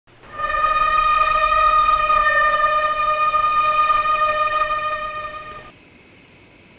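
A huge monster lets out a long, loud, shrieking roar that stops abruptly.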